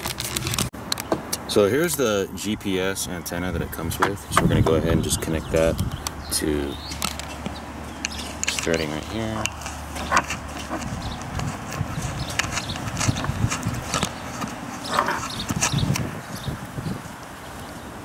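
Small plastic connectors click and tap as they are handled.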